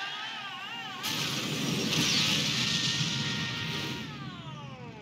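A car crashes amid a loud roaring rumble.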